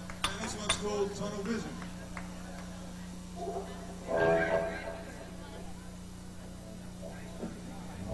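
An electric guitar plays bending notes.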